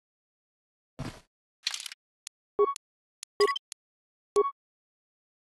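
Short electronic beeps sound as menu options are selected.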